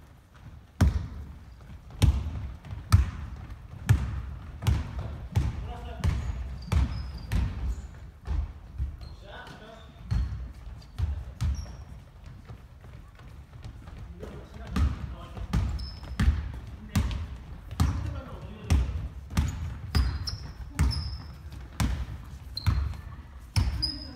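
A basketball bounces on a wooden floor, echoing through a large hall.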